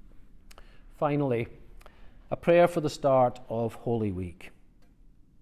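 A middle-aged man speaks calmly into a microphone in a room with a slight echo.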